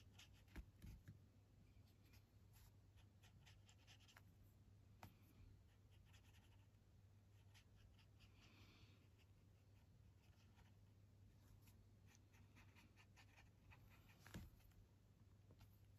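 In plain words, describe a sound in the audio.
A brush taps and swishes in a watercolour palette.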